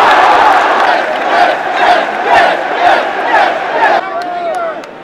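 A huge crowd claps and chants in rhythm.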